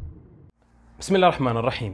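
A man speaks calmly into a clip-on microphone, close by.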